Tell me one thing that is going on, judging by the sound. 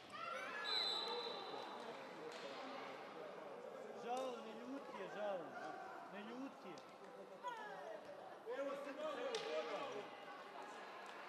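Young women players shout and call out to each other in a large echoing hall.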